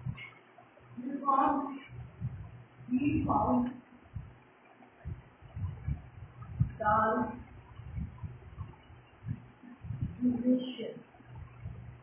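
A woman speaks in short phrases nearby.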